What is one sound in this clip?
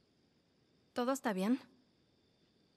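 A teenage girl asks a short question softly.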